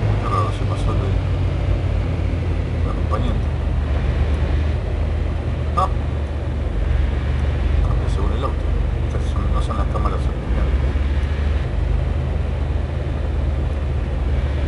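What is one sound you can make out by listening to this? A car engine hums steadily while driving at speed.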